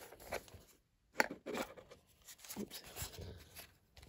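A small cardboard box lid slides open.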